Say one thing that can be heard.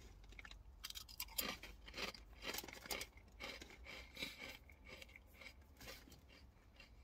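A man crunches a crisp while chewing.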